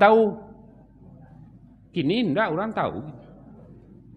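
An elderly man speaks into a microphone in a melodic, drawn-out preaching voice.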